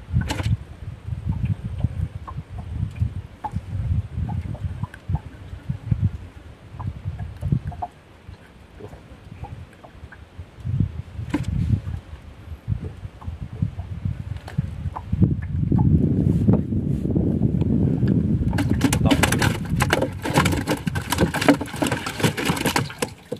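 Wind blusters outdoors on open water.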